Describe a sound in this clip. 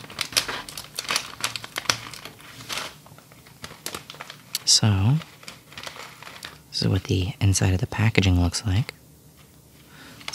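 A plastic snack bag crinkles and rustles close by.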